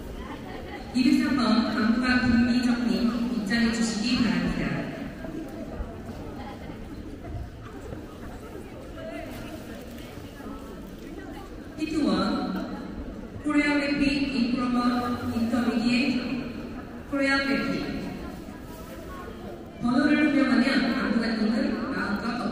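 A man announces over a loudspeaker, echoing through a large hall.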